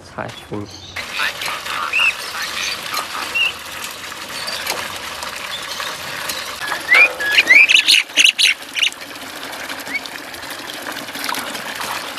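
Water pours steadily from a tap into a basin.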